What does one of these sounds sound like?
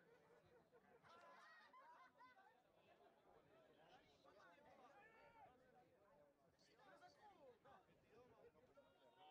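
Men shout and call to each other across an open field.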